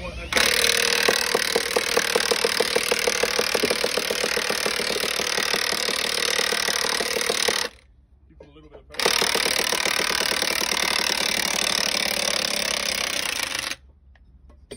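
A cordless rail drill whines loudly as it bores through a steel rail.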